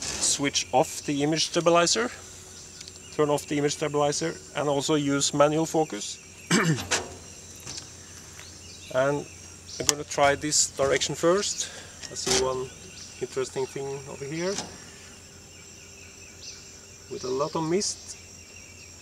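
A middle-aged man speaks calmly and close by, explaining.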